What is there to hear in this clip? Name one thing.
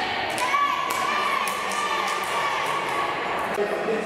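Teenage girls clap hands in a high five.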